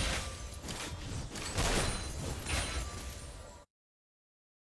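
Magic blasts and clashing hits burst in a fight.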